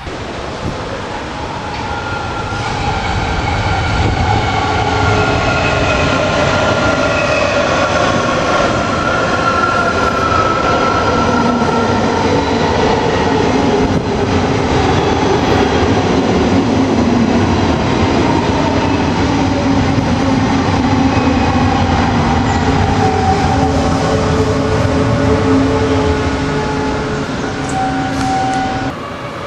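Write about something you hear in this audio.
A train rumbles loudly as it pulls in alongside.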